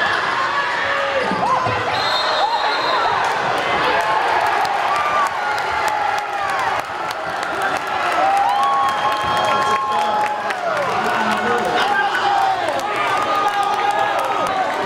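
A crowd cheers loudly in an echoing gym.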